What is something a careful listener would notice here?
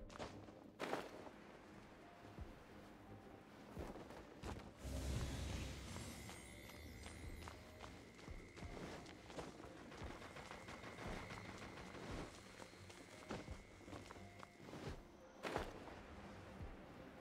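Wind rushes past while gliding through the air.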